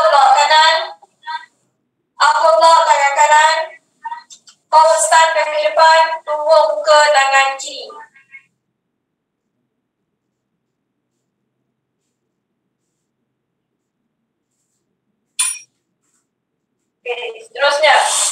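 A young woman gives instructions through an online call, in short bursts.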